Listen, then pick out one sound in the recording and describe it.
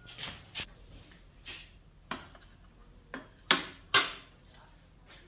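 Ceramic bowls and a metal spoon clink against a metal tray.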